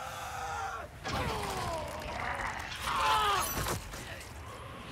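A creature snarls with a gurgling growl.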